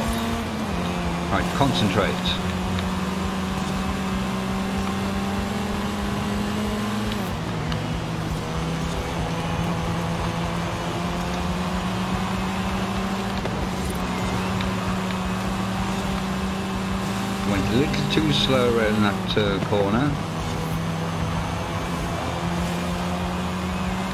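A racing car engine drones steadily, its pitch stepping with gear changes.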